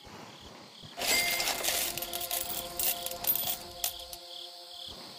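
A bright chime rings out as a diamond is collected.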